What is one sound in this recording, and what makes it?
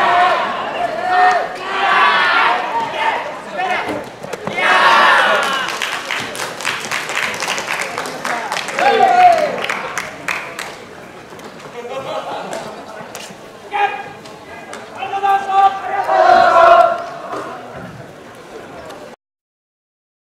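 A group of young men shout loudly in unison outdoors.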